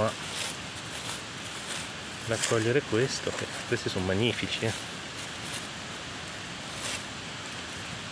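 Dry leaves rustle as a hand brushes through them.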